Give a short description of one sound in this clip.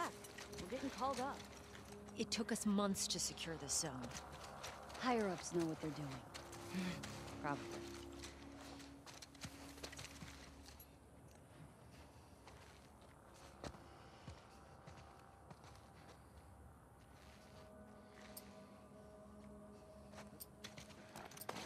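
Tall grass rustles as someone crawls slowly through it.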